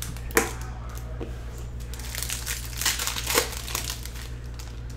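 A plastic sleeve crinkles as hands handle it.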